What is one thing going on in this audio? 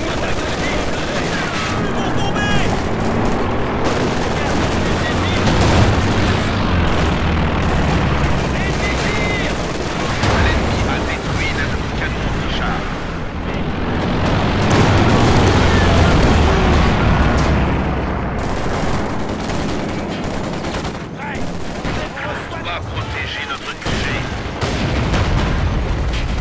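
Tank engines rumble low and steadily.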